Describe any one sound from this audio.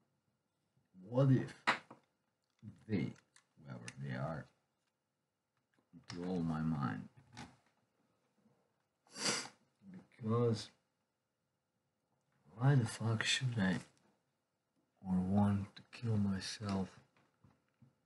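An older man talks calmly and close by, in short bursts.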